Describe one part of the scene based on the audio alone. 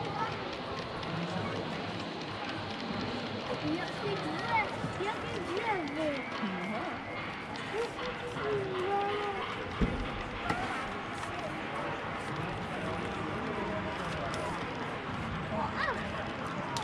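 Voices of a crowd murmur in a large echoing hall.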